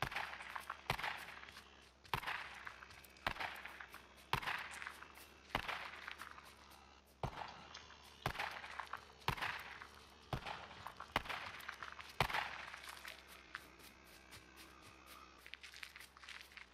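Heavy footsteps thud at a steady, even pace.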